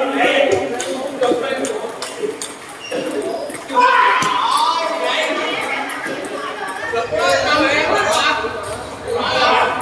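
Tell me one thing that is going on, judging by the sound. A crowd of young men chatter and call out nearby.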